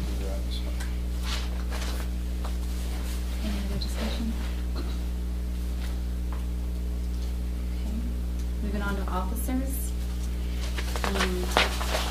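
A woman speaks calmly across a small room, heard through a distant microphone.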